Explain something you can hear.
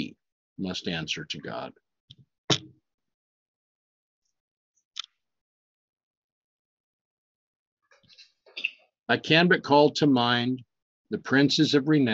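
A middle-aged man reads aloud close to a microphone, in bursts with pauses.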